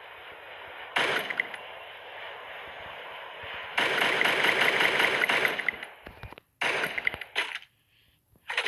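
A rifle fires bursts of sharp shots.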